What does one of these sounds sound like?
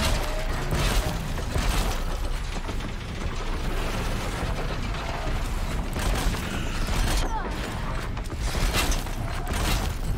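Explosions burst loudly.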